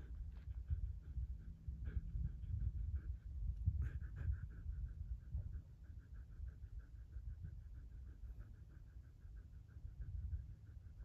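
A dog pants quickly and steadily close by.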